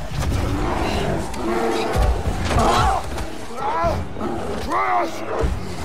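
A bear growls and roars loudly.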